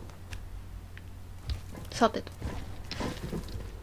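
Light footsteps patter on stone.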